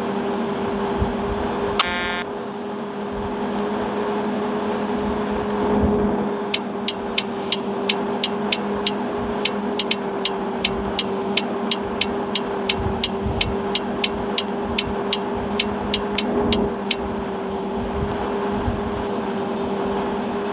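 A coach bus engine drones while cruising on a highway.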